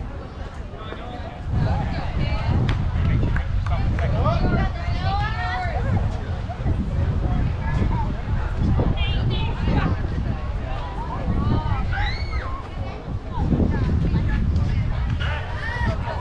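Young players call out across an open field outdoors.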